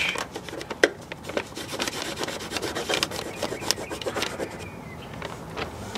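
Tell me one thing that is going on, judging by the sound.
A utility knife blade scrapes and slices through paper.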